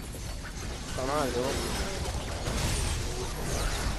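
Explosions crackle and boom up close.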